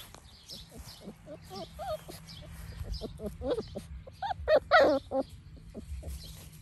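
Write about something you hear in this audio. Puppies growl and yip as they play close by.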